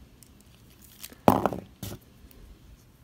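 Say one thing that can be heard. Plastic toy joints click and creak as they are moved by hand.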